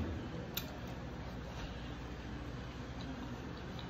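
A woman chews food.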